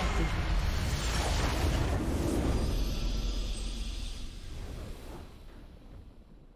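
A game's victory fanfare swells and slowly fades.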